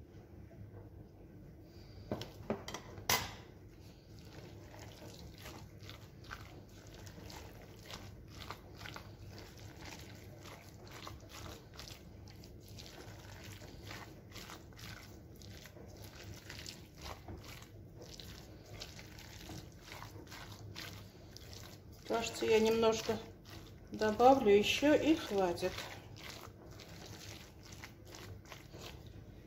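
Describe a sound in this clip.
Hands squish and knead a moist mixture in a glass bowl.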